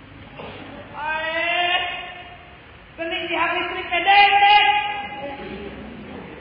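A woman sings loudly in a large echoing hall.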